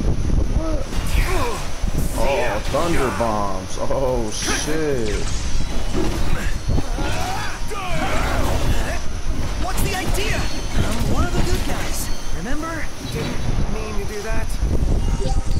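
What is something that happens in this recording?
Swords clash and strike.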